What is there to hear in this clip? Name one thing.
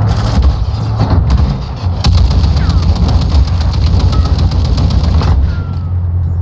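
A heavy machine gun fires rapid bursts in a large echoing hall.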